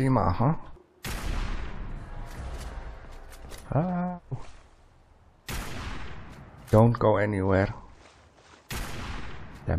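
A rifle fires loud shots that ring out and fade.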